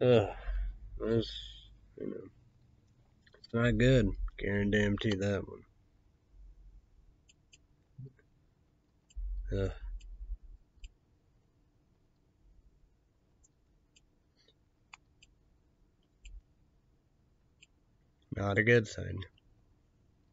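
A young man speaks calmly and close by, in short bursts with long pauses.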